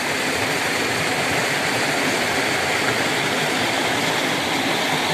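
A shallow stream babbles and trickles steadily over rocks close by.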